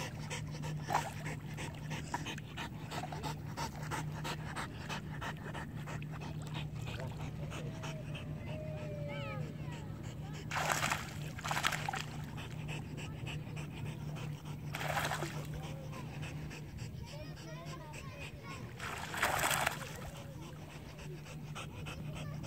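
Dogs paddle and splash through water.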